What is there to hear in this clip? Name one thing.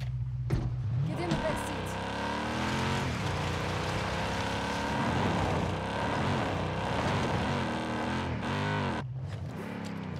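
An off-road vehicle's engine revs as it drives.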